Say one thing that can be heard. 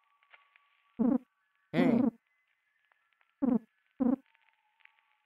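Short electronic blips chirp one after another.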